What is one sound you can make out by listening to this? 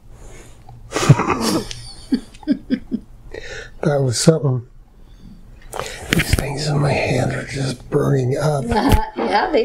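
An older man speaks close by.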